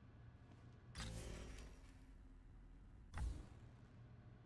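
A game menu opens and closes with a soft whoosh.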